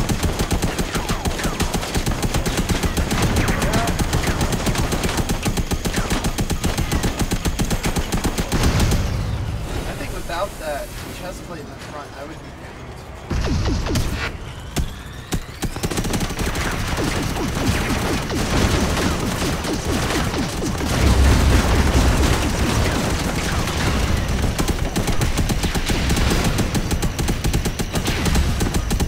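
Rapid gunfire rattles and blasts.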